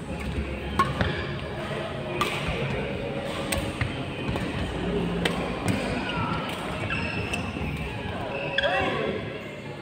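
Rackets smack a shuttlecock back and forth in quick rallies.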